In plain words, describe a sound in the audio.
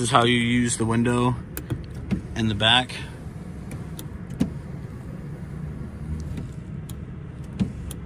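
A button clicks on a car's overhead console.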